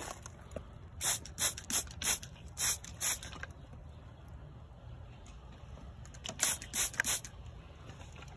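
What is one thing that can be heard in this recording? A spray bottle hisses in short, quick bursts.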